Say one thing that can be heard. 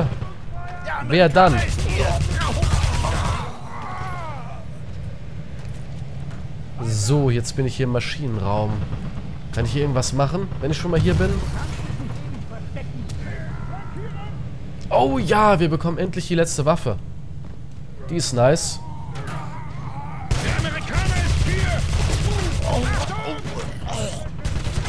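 Gunshots fire in rapid bursts nearby.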